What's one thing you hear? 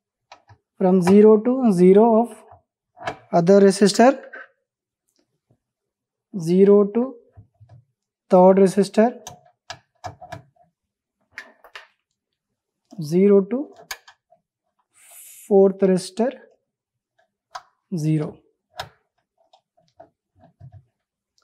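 Banana-plug patch leads click into sockets.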